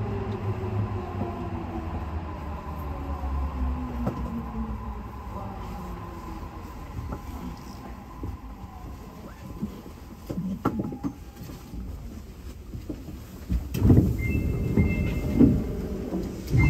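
A train rumbles and rattles along the track.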